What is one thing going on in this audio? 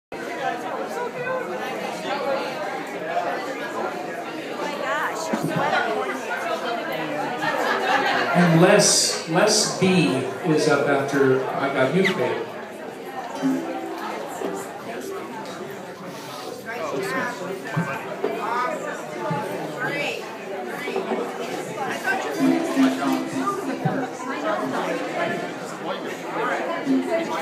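A man strums an acoustic guitar.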